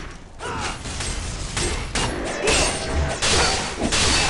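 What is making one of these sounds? Magic blasts burst with a whoosh.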